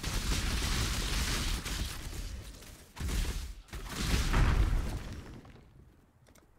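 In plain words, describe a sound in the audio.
Spell blasts and explosions crash loudly in a game.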